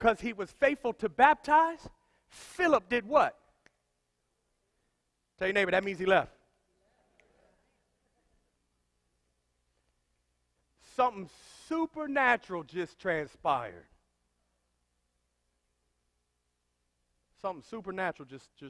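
A man speaks with animation to an audience, with pauses between phrases.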